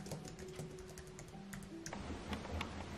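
Fingers tap quickly on a keyboard.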